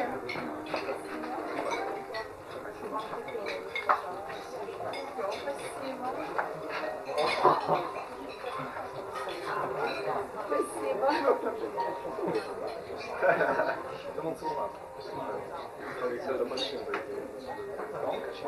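Many people chatter at once around the area.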